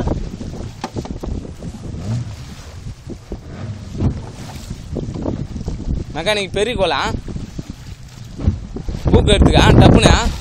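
Waves slosh against a boat's hull.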